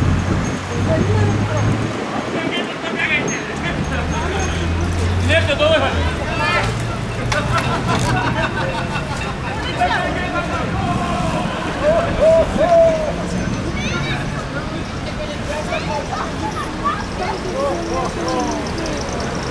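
Bicycles roll past on the road with tyres whirring.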